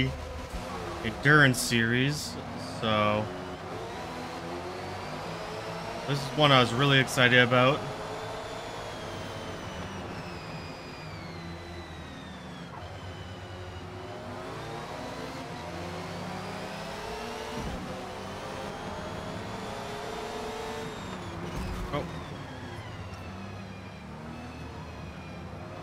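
Other racing cars' engines drone nearby.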